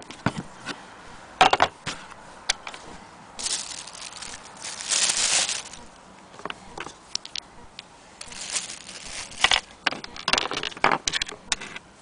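Small metal parts clink against a hard surface.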